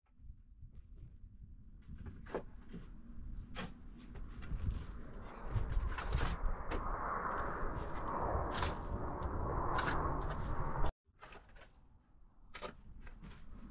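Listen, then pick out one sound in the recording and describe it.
A shovel scrapes and scoops through dry dirt.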